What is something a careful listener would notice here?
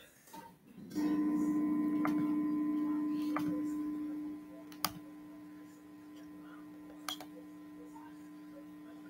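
An electric guitar rings with a steady held note that drops to a quieter hum.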